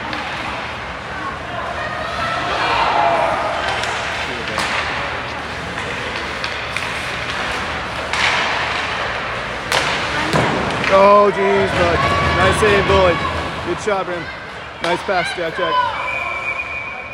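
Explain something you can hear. Spectators chatter in a large echoing rink.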